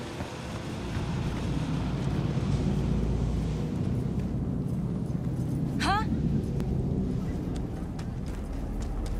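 A car engine hums as a car drives past on the street.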